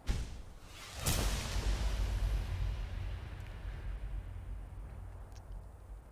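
A soft magical whoosh swells and slowly fades away.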